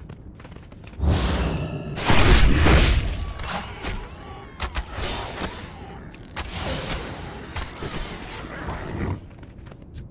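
A magic spell whooshes and crackles in bursts.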